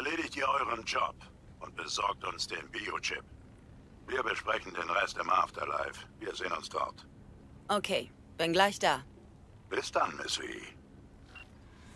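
A man speaks calmly over a call.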